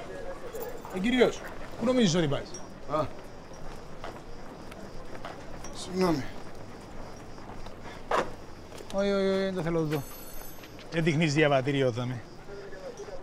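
A middle-aged man calls out sharply and questions from nearby.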